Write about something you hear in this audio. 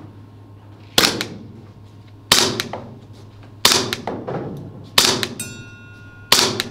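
Gunshots ring out one at a time, echoing in a large hall.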